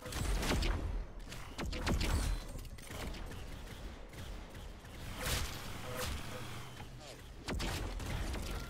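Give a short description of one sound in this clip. A laser rifle fires sharp zapping shots in quick bursts.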